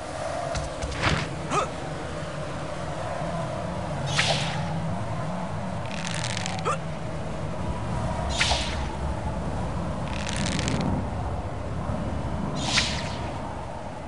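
Web lines shoot out with short whooshing swishes again and again.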